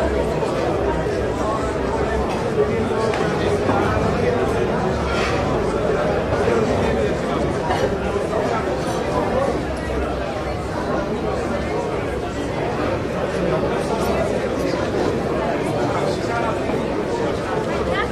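A crowd of men and women chatter all around in a large room.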